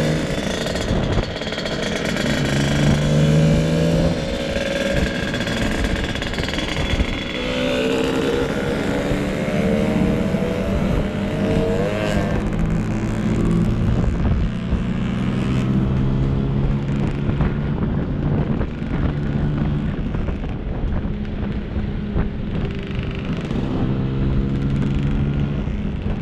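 Wind buffets loudly against a rider's helmet.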